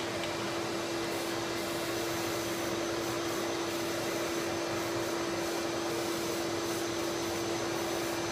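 A spray can hisses steadily as paint is sprayed.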